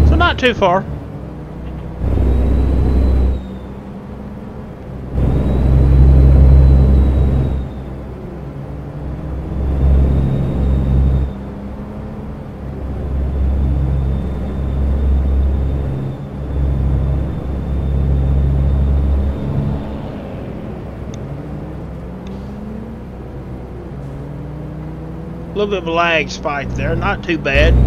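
A truck engine rumbles low and steadily, surging louder and softer.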